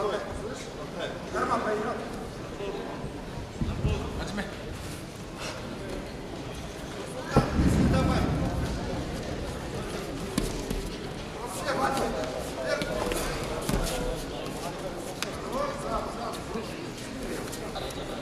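A crowd of spectators murmurs and calls out in a large echoing arena.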